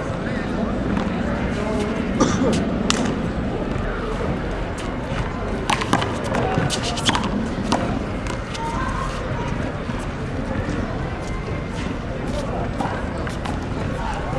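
A small ball smacks sharply against a wall and the ground, again and again.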